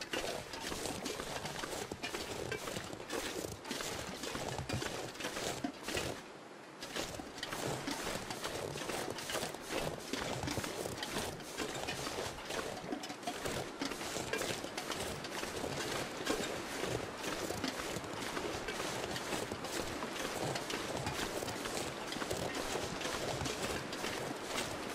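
Footsteps crunch in deep snow.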